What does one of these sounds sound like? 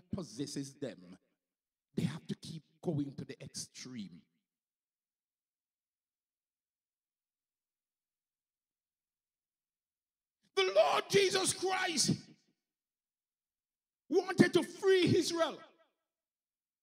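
A man speaks into a microphone with animation, heard through loudspeakers.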